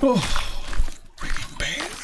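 A knife slices into an animal carcass.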